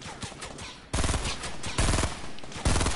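Gunfire cracks loudly in bursts.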